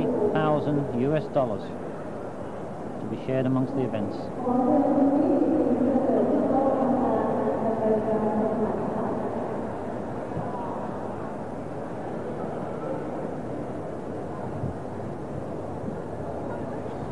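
A large crowd murmurs throughout the arena.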